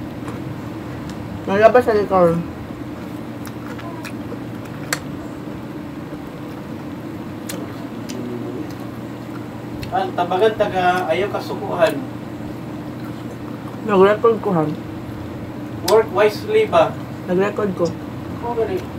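A young woman chews and smacks her lips softly.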